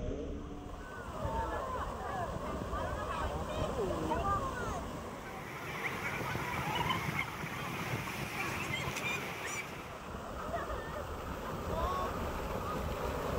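Water rushes and splashes steadily down rocks close by.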